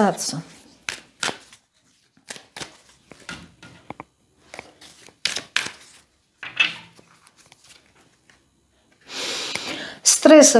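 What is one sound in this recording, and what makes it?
Cards shuffle and tap together in a woman's hands.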